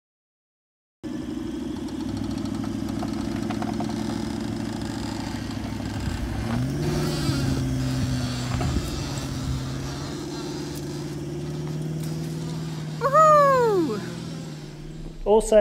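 An engine drones and revs as a vehicle pulls a trailer through soft sand.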